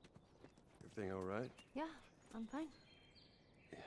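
A young girl answers quietly.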